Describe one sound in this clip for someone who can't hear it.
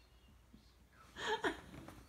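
A young boy laughs loudly close by.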